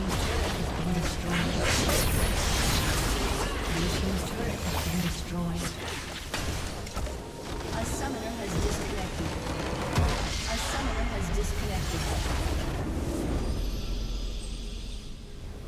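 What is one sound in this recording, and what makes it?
Game spell effects crackle and blast in a busy fight.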